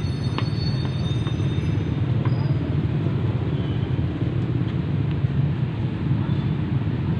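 A crowd murmurs steadily in the background outdoors.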